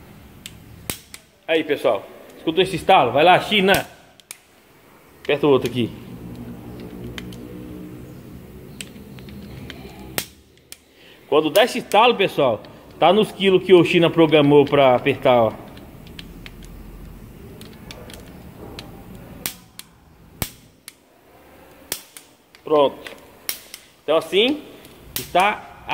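A ratchet wrench clicks sharply as bolts are tightened.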